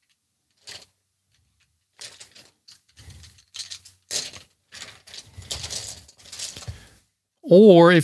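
Wooden pencils rattle and clatter against each other.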